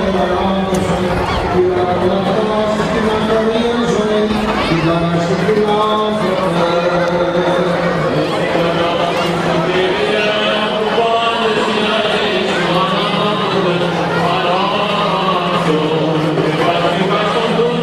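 Elderly men chant a slow, sustained hymn through a microphone and loudspeakers outdoors.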